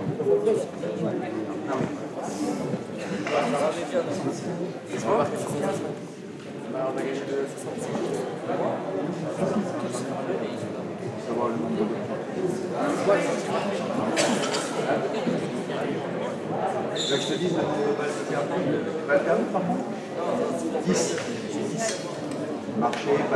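Men and women chatter nearby in a large echoing hall.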